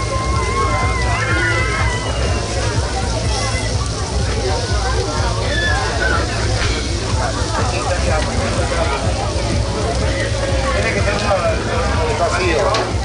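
Meat sizzles and crackles on a hot grill.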